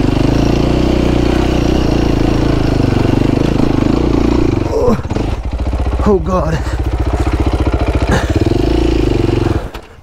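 A dirt bike engine revs loudly and sputters up close.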